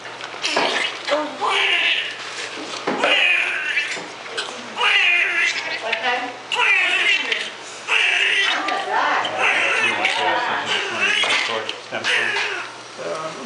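A newborn baby cries loudly in sharp, repeated wails.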